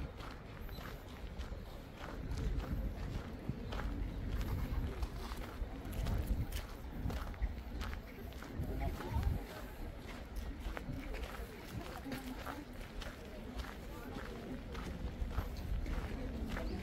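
Footsteps crunch on gravel close by.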